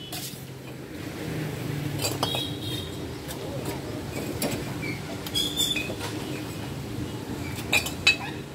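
A trowel taps and scrapes on bricks.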